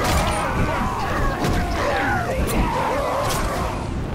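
Blows land with heavy thuds and clangs.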